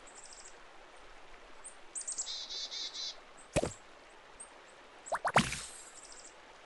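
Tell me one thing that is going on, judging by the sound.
Short game chimes and chirps play.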